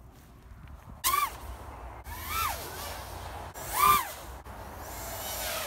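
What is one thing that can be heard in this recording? A small drone's motors whine loudly, revving up and down in sharp bursts as it flies past.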